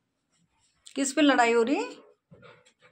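A dog lets out a short, high whine.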